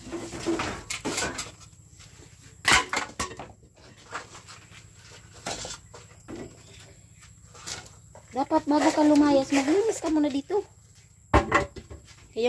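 Metal cookware clanks and knocks.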